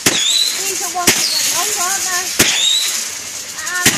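Rockets whistle as they shoot up.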